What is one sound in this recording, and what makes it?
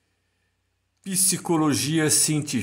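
A man speaks calmly through an online call microphone.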